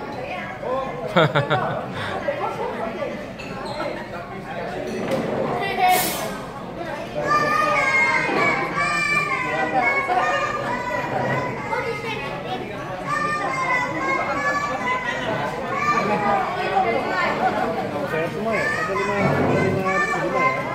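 A man and children talk at a table close by.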